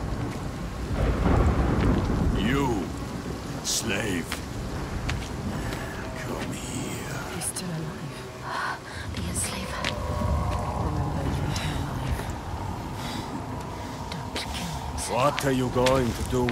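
A man shouts harshly nearby.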